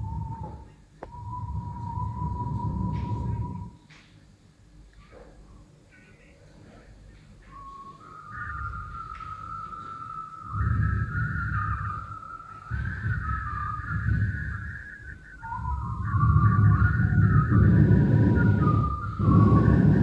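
Electronic tones hold and shift in pitch through loudspeakers.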